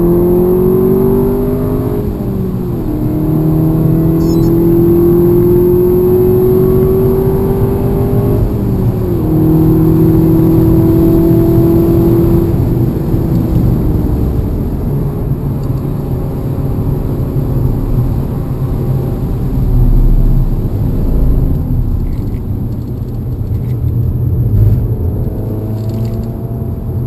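A race car engine roars loudly from inside the cockpit, rising in pitch and dropping sharply at each gear change.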